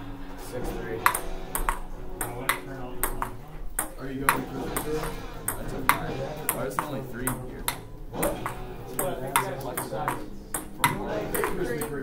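A ping pong ball clicks back and forth off paddles and a table.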